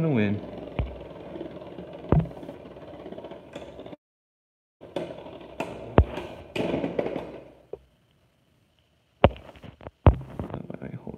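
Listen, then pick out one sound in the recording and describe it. Spinning tops clash with sharp clicks.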